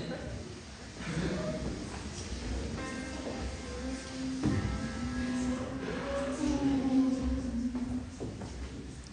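A group of young men sings softly in harmony.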